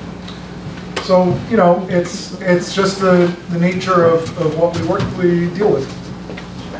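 A man speaks clearly through a microphone.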